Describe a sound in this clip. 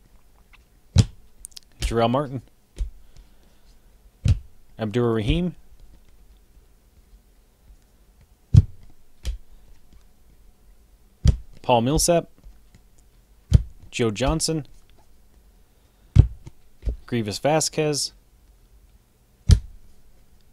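Trading cards flick and slap as a hand sorts through them.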